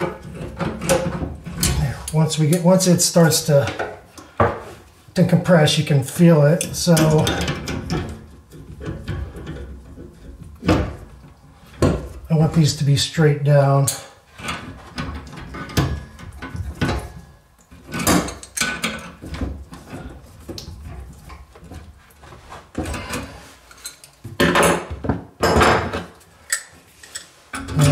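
Metal pliers click and scrape against pipe fittings.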